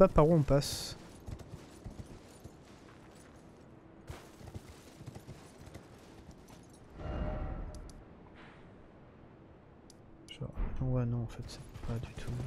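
A horse's hooves clop on stone.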